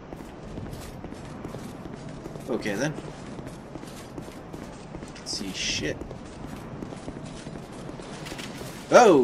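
Armoured footsteps tread on stone.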